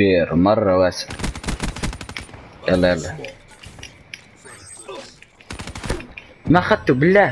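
Rapid gunfire bursts out in short loud volleys.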